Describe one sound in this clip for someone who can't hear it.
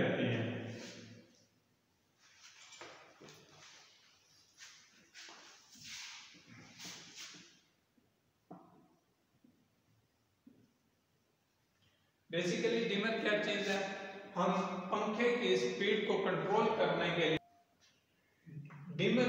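A man speaks steadily nearby, explaining.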